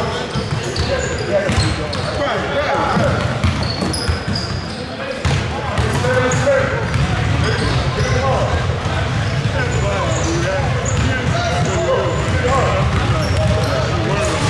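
Basketballs bounce and thud on a hard floor, echoing in a large hall.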